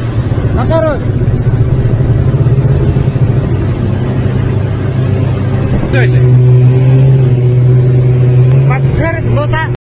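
A snowmobile engine hums steadily.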